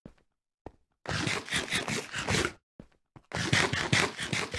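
Quick crunchy chewing sounds repeat in bursts.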